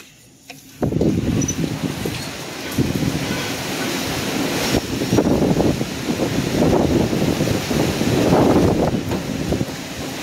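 Strong wind gusts and roars.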